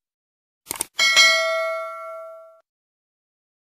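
A small bell rings and slowly fades.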